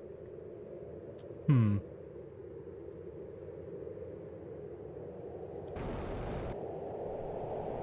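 A low, muffled underwater hum rumbles steadily.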